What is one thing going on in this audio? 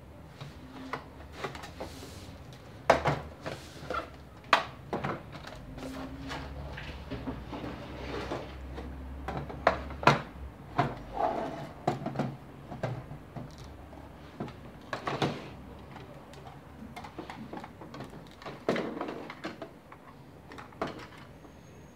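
Plastic toy pieces knock and clack on a wooden table.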